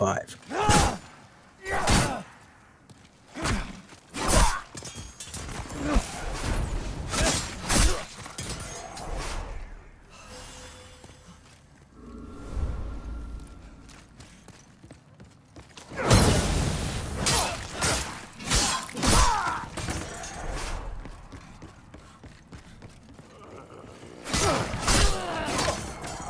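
Metal swords clang and slash in a fight.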